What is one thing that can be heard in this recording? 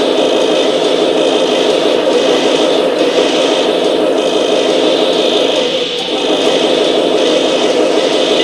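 Harsh static hisses and crackles steadily.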